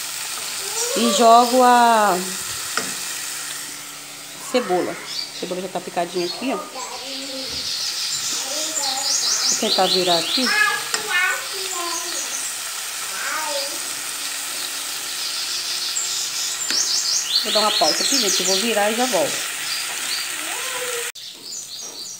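Meat sizzles and spits steadily in a hot pan.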